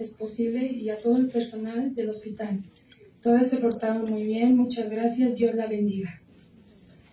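A young woman speaks calmly into a microphone, heard through a loudspeaker in a room.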